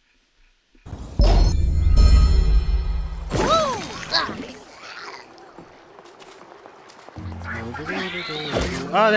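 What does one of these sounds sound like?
Video game sound effects play.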